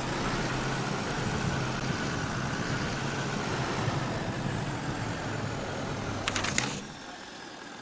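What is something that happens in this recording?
A truck engine rumbles steadily as it drives over rough ground.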